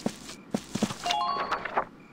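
A short chime beeps.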